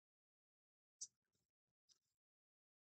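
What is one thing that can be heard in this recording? Playing cards shuffle and snap softly.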